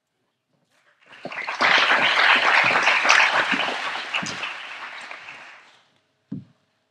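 An audience applauds loudly, then the applause fades.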